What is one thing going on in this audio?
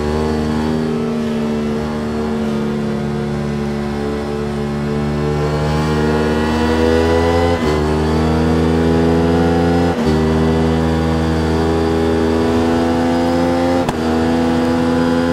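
A motorcycle engine roars steadily, rising in pitch as it speeds up and dipping briefly at each gear change.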